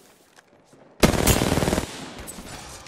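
A rifle fires a rapid burst of shots up close.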